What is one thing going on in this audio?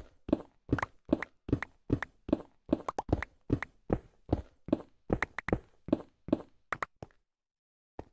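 A pickaxe chips rapidly at stone and dirt blocks.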